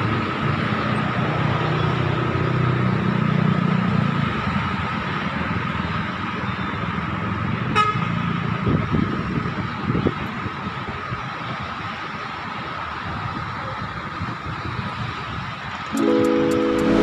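Busy city traffic rumbles steadily from below, outdoors.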